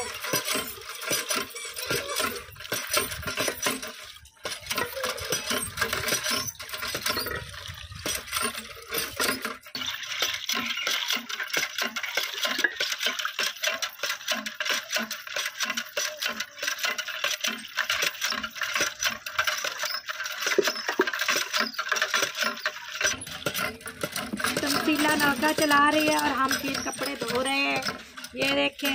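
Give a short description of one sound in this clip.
Water pours from a hand pump and splashes into a metal pot.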